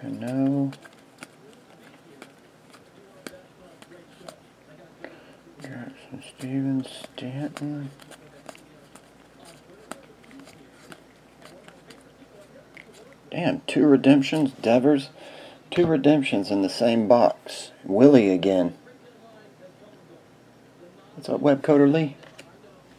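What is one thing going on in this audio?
Glossy trading cards are flicked through by hand, with light clicks and rustles.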